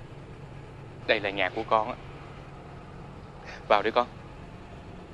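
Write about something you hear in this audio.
A middle-aged man calls out loudly nearby.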